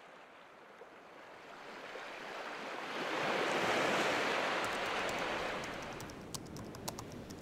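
Gentle waves wash onto a shore, swelling and then easing.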